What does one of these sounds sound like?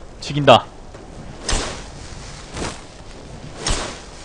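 A magic spell whooshes and crackles in bursts.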